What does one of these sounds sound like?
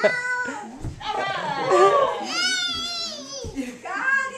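A young child squeals and babbles in a high voice nearby.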